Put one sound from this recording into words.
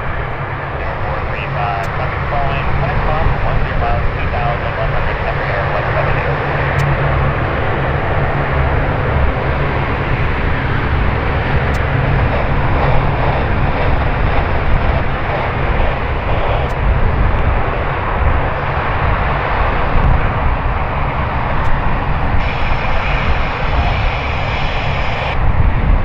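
Propeller engines of an aircraft roar steadily nearby.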